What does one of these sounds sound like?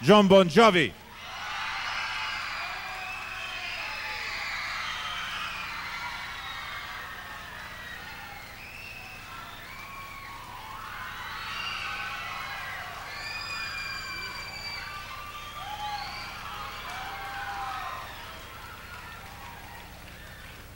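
A large crowd cheers and whistles in a big hall.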